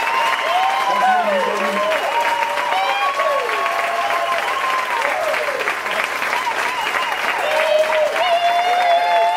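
A group of people cheer and whistle loudly.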